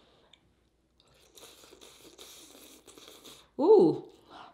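A woman chews and slurps food close to the microphone.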